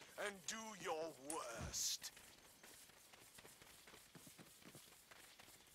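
Footsteps run quickly over dry, brushy ground.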